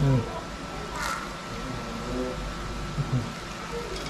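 Hot water pours from a pot and splashes onto wet cloth in a basin.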